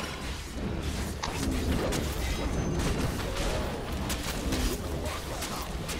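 Blades swish and clash in a fast fight.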